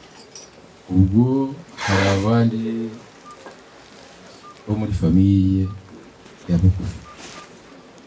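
A man speaks loudly into a microphone through a loudspeaker, in short bursts.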